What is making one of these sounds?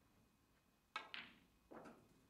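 A cue strikes a ball with a sharp tap.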